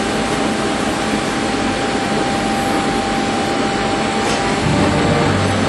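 Packs of jars clink as they are pushed onto a conveyor.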